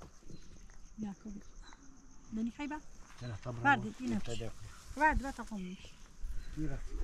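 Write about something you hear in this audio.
A woman speaks nearby in a lively voice.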